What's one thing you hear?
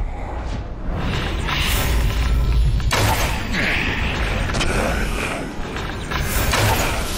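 An eerie magical energy crackles and hums.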